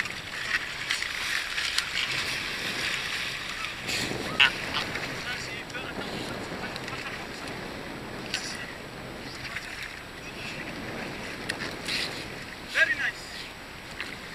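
Water splashes as a seal thrashes.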